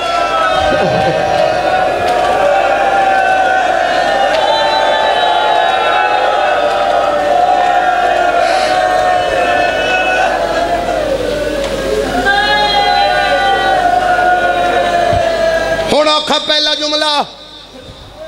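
A young man chants a mournful lament into a microphone, loud and echoing through a loudspeaker.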